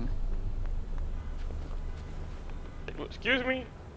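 Footsteps tap on a city pavement.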